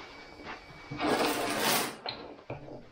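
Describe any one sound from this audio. Paper towel rustles and tears.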